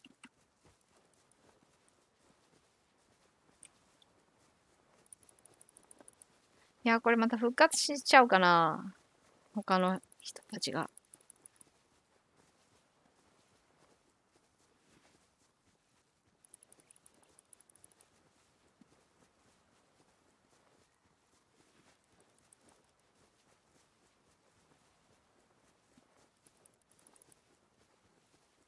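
Footsteps swish softly through grass.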